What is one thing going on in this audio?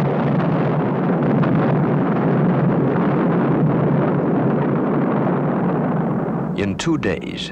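Bombs explode in the sea with a deep, roaring rumble.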